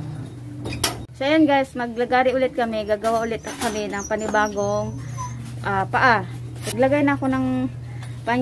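A young woman speaks calmly close by.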